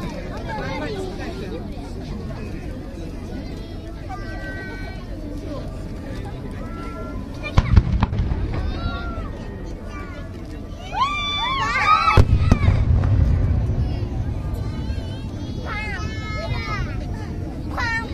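A crowd of people chatter and cheer outdoors.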